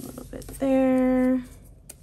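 A roll of tape is pulled and peeled.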